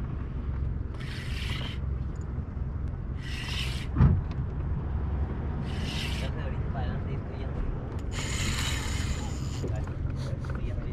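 A fishing reel's drag buzzes in short bursts.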